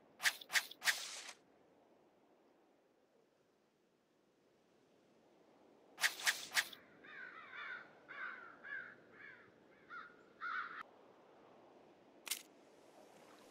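Short sharp clicks sound in quick groups.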